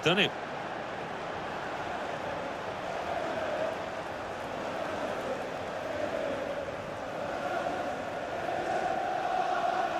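A large stadium crowd cheers and roars loudly.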